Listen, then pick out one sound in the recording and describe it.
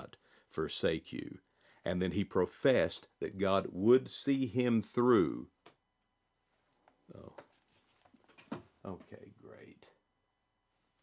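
An older man speaks calmly close to a microphone, then more quietly as he turns away.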